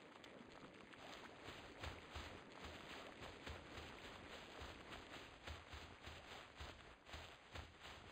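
Footsteps tread quickly through grass.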